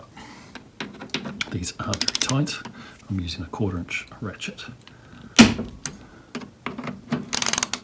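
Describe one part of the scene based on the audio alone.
A ratchet clicks while turning a screw.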